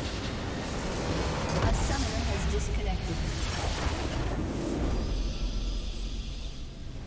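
Game effects burst and crash loudly as a base explodes.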